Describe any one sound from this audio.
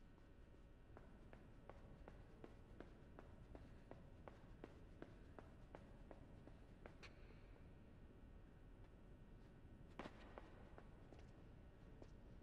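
Light footsteps patter steadily on a hard floor.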